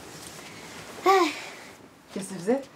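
A young girl laughs softly.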